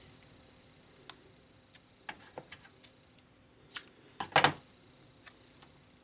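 Tape is pulled from a roll with a sticky rip.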